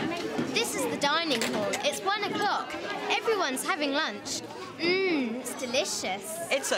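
A young girl speaks brightly and cheerfully, close by.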